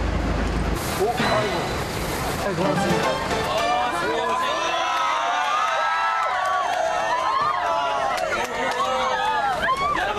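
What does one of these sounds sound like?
An outdoor crowd chatters in the background.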